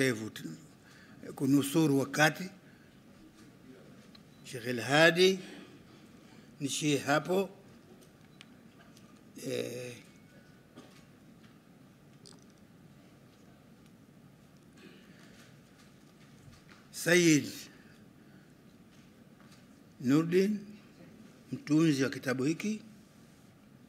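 An elderly man speaks slowly into microphones, in short phrases with long pauses.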